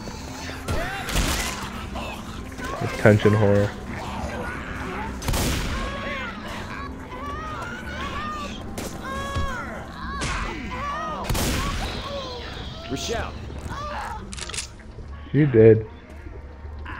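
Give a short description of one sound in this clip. A gun fires loud single shots and short bursts.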